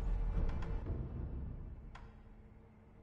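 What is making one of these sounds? A magical shimmering chime rings out and fades.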